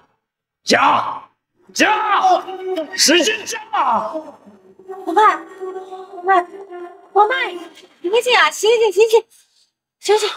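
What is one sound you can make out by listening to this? A middle-aged man shouts with agitation close by.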